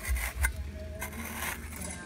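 A small trowel scrapes and digs into soil.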